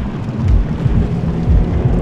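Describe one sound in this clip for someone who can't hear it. A fire crackles in a brazier.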